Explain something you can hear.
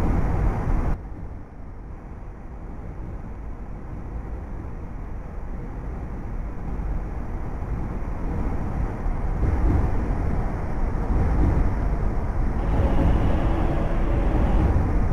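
A train approaches through a tunnel and rumbles past.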